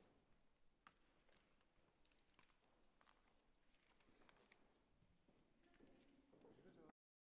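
Footsteps tap on a wooden floor in a quiet, echoing hall.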